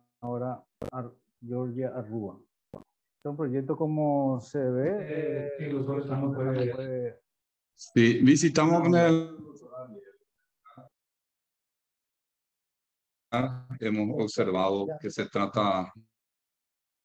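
A middle-aged man speaks calmly over an online call, with pauses.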